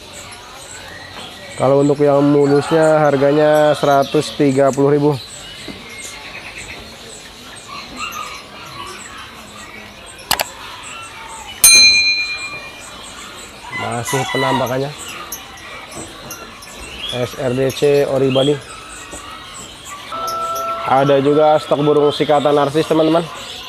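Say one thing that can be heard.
Small caged birds chirp and twitter.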